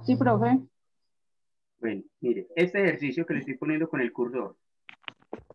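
Another woman speaks briefly over an online call.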